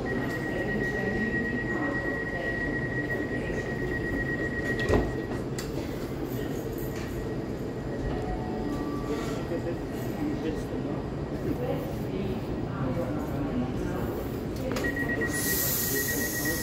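A train idles with a steady low rumble at a platform.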